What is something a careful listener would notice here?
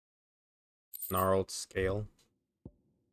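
Soft electronic chimes sound twice.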